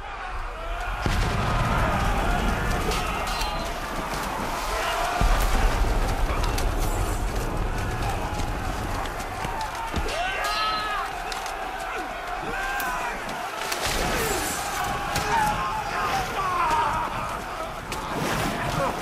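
Weapons clash and thud in close fighting.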